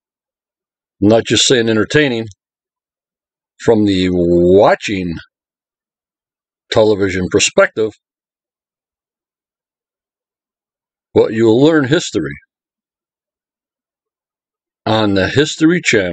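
An elderly man speaks calmly and close up, in short phrases with pauses.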